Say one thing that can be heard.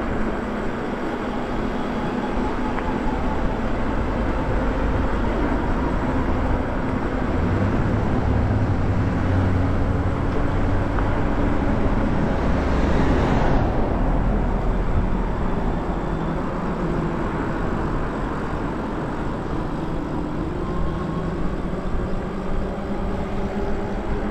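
An electric motor whines steadily, rising and falling in pitch with speed.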